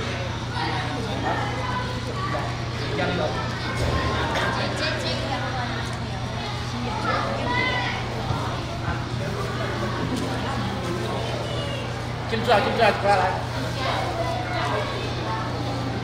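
A crowd of men, women and children chatters all around.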